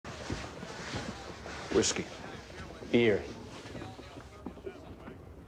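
Voices murmur in a large room.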